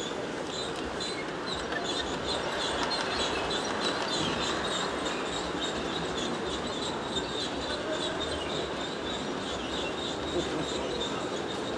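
A model train motor hums steadily.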